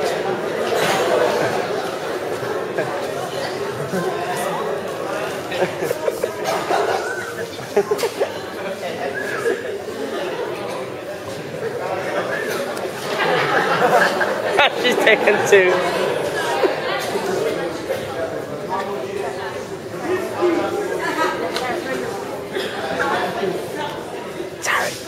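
Teenagers talk loudly nearby in a large echoing hall.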